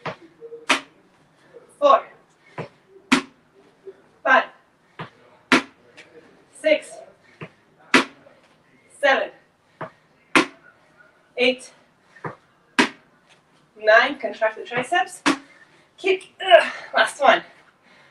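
Sneakers thump and step on a hard floor.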